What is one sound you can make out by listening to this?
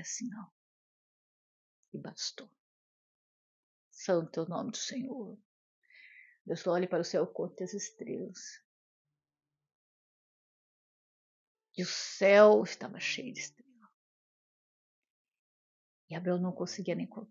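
A middle-aged woman speaks calmly and warmly close to a microphone, in bursts with pauses.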